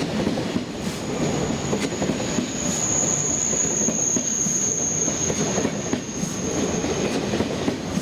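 A high whine rings out from the train.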